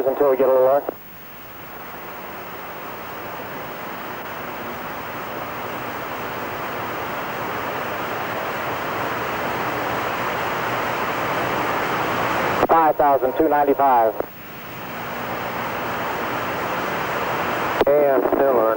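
A jet engine roars steadily, slowly growing louder.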